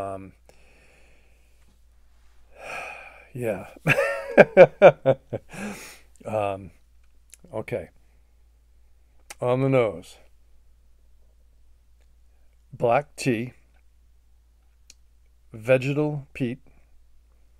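An elderly man talks calmly and close to a microphone, in short bursts with pauses.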